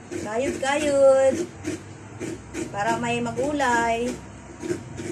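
A middle-aged woman speaks with animation close by, her voice rising and falling in drawn-out tones.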